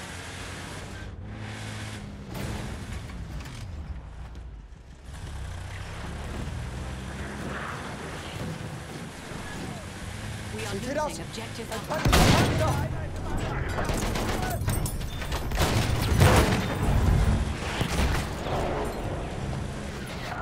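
An armoured car's engine rumbles and growls as it drives over rough ground.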